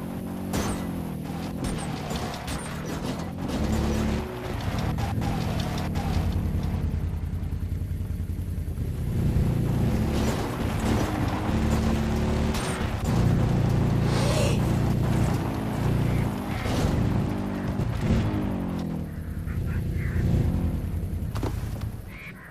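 A quad bike engine revs and rumbles as it drives over rough ground.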